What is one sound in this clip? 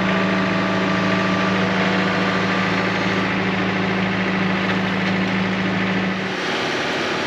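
A tractor engine runs with a steady low hum.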